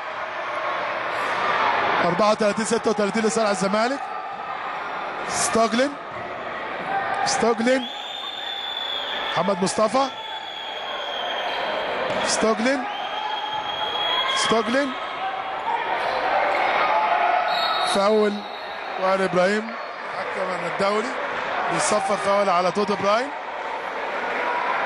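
A large crowd chants and cheers loudly in an echoing hall.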